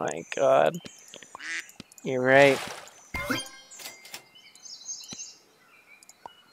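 Playful game sound effects chirp and pop in short bursts.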